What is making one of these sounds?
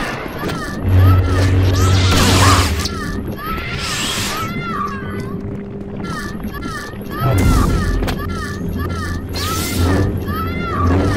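A lightsaber hums steadily and buzzes.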